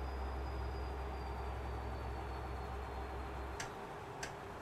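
A truck engine drones steadily, then quietens.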